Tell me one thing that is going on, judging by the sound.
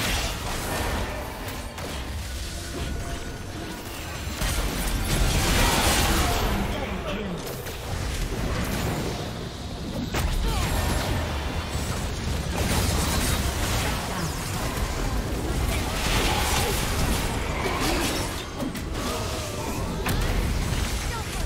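Fantasy battle game sound effects play, with spell blasts and weapon hits during a fight.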